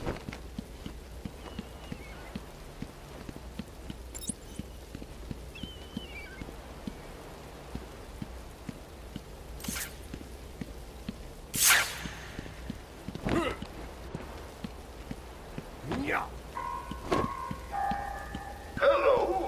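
Footsteps tap steadily on a hard surface.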